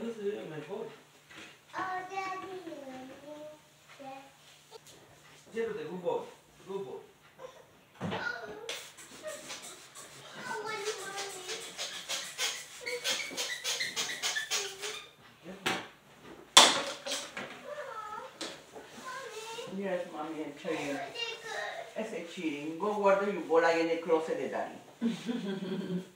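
A cloth rubs and squeaks on a tile floor.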